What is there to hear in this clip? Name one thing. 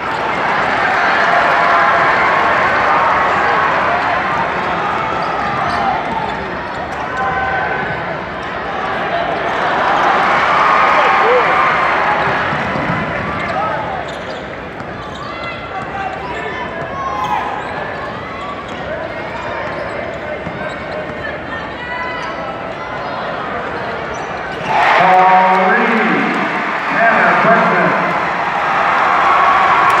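A large crowd cheers and shouts in a big echoing gym.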